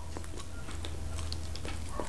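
A man sips tea.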